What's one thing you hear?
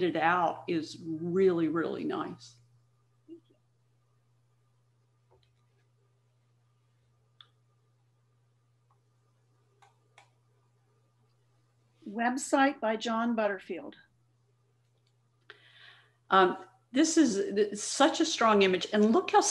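An adult speaks calmly, heard over an online call, with pauses.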